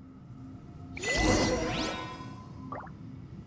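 A bright chime rings out with a rising shimmer.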